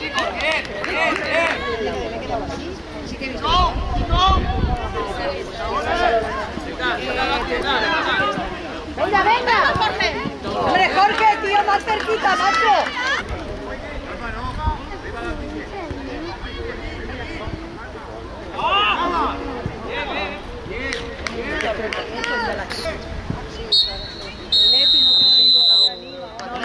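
Young players shout to each other across an open pitch outdoors.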